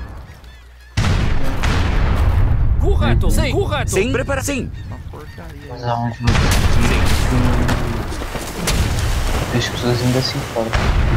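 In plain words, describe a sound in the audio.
Cannons boom repeatedly in a sea battle.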